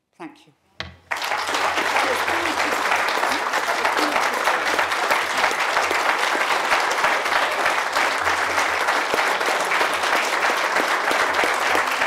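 A crowd applauds loudly and steadily.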